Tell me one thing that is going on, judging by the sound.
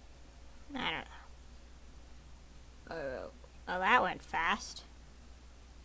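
A young woman talks with animation into a headset microphone.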